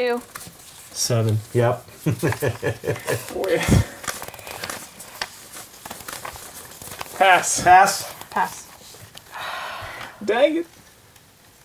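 Playing cards shuffle and slide.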